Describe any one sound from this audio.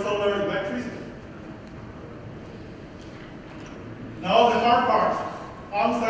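A man speaks into a microphone over loudspeakers in a large room, in short phrases with pauses.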